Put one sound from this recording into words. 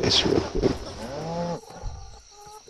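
A cow moos.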